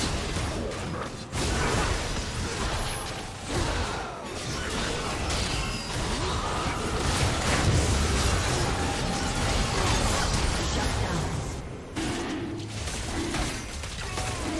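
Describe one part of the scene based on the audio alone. Game spell effects and attacks crackle and clash in quick bursts.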